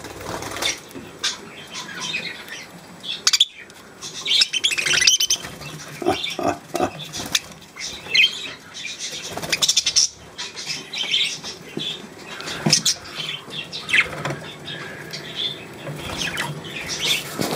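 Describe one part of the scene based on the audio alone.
A budgie pecks at seeds with quick little taps.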